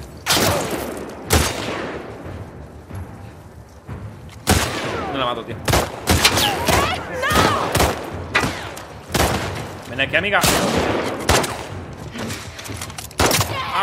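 Gunshots fire in sharp, loud bursts.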